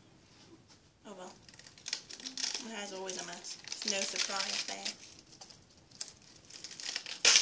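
Cabbage leaves crinkle and tear in someone's hands.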